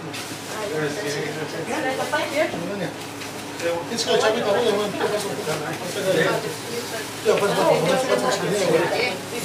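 A group of men and women chatter close by.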